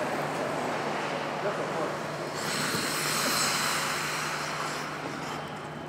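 Ice skate blades scrape and hiss across the ice in a large echoing hall.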